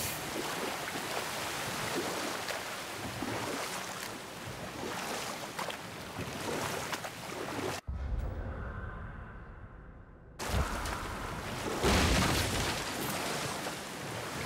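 Oars splash and paddle through water.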